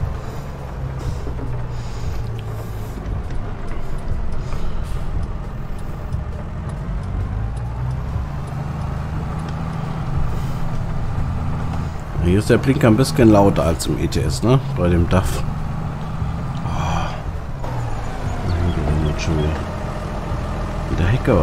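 A tractor engine drones steadily while driving.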